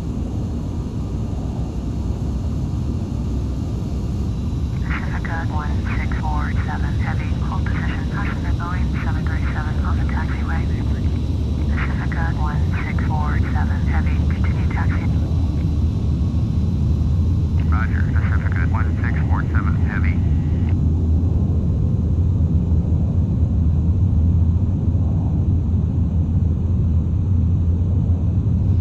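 Jet engines roar steadily and slowly grow louder.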